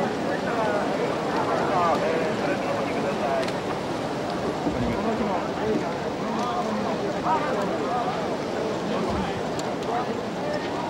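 A crowd of people chatters outdoors at close range.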